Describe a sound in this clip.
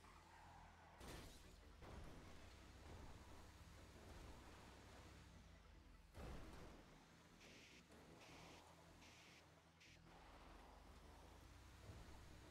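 A truck crashes and thuds over rough ground.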